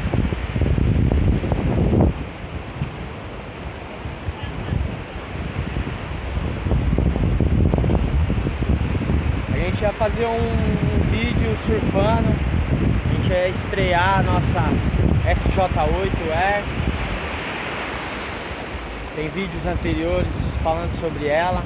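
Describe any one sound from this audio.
Waves break and wash up on a beach close by.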